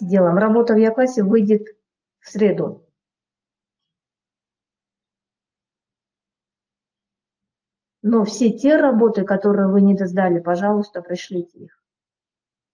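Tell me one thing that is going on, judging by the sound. A woman speaks calmly through a microphone, with long pauses.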